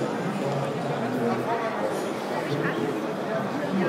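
A middle-aged man speaks through a microphone over a loudspeaker.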